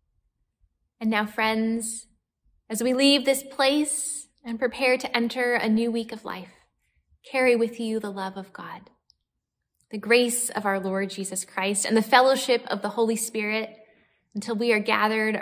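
A young woman speaks warmly and cheerfully, close to a microphone.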